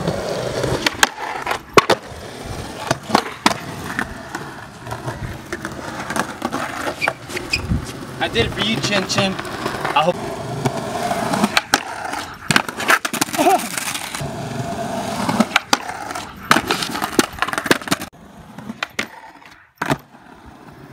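A skateboard deck snaps and clacks against concrete.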